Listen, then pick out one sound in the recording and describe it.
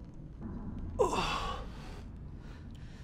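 A young man groans and gasps in pain.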